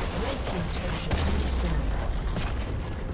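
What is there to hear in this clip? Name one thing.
A turret crumbles with a deep rumbling blast.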